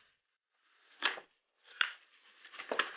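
A clip clicks into place against a padded helmet.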